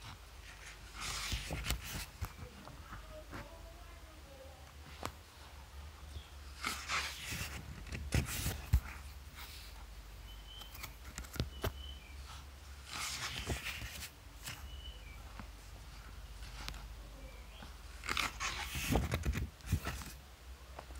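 Glossy paper pages rustle and swish as they are turned one after another.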